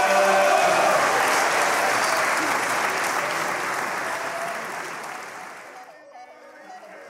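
A choir sings in a large echoing hall, then the singing fades out.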